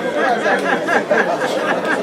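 A woman laughs loudly nearby.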